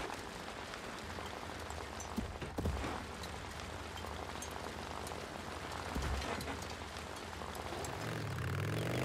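Motorcycle tyres crunch over gravel and dirt.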